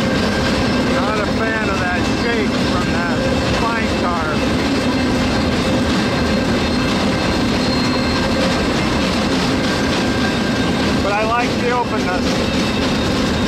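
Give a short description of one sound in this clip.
Train wheels squeal against the rails.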